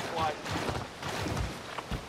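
Water splashes and rushes.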